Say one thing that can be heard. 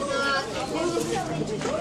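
Water splashes in a fountain.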